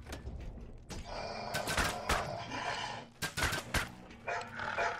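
Metal weapons clash and thud in a fight.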